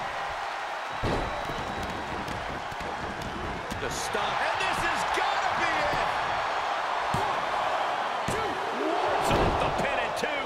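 A body thuds heavily onto a wrestling mat.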